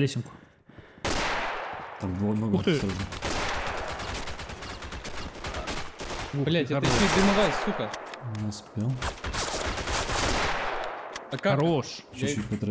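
Gunshots crack and echo loudly.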